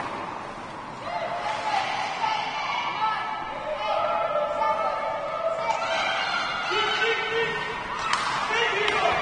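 Young children shout and cheer nearby in an echoing rink.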